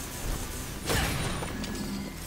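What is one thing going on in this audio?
A blast bursts loudly with crackling sparks.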